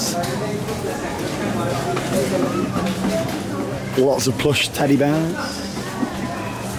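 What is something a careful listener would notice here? A crowd of people chatters in a busy room.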